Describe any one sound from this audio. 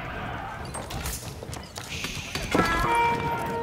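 A building crumbles and collapses with a crash.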